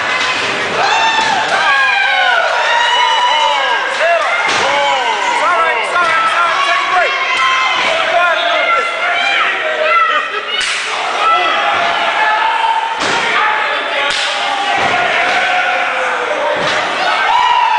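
Bodies slam heavily onto a wrestling ring mat.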